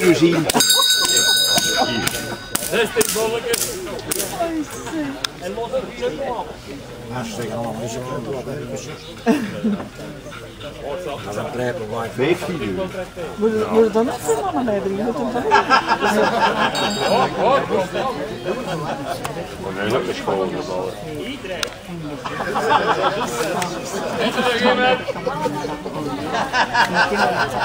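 Several adult men and women talk casually nearby outdoors.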